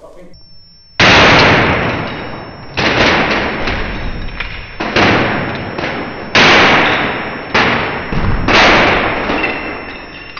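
A sledgehammer smashes a computer monitor with loud, repeated crashes.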